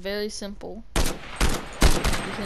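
An assault rifle fires a quick burst of loud shots.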